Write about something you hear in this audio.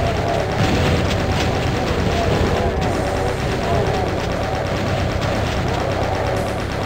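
Monsters growl and roar.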